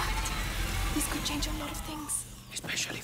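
A young girl speaks quietly and excitedly.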